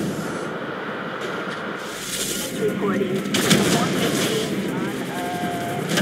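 A car explodes with a loud bang.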